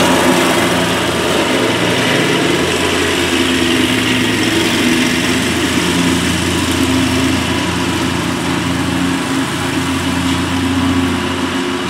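A zero-turn riding mower cuts thick grass, its engine droning as it moves away.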